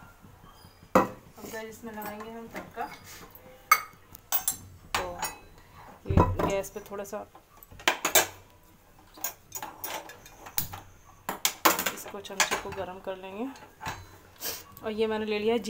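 A metal ladle clinks against a metal pan.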